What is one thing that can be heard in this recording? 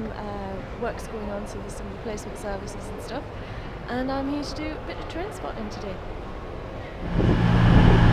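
A young woman talks with animation at close range.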